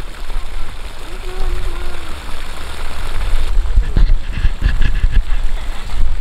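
A pole splashes and swishes in water.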